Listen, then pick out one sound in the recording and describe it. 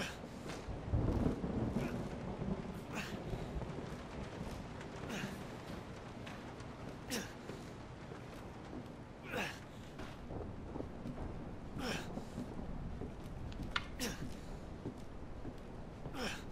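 Footsteps thud slowly on creaking wooden floorboards.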